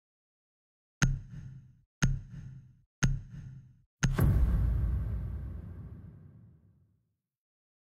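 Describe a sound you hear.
A countdown beeps once per second, ending in a deep booming hit.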